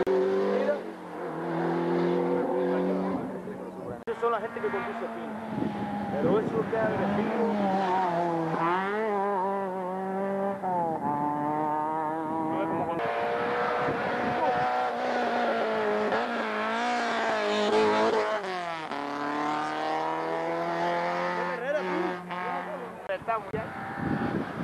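A rally car engine roars and revs.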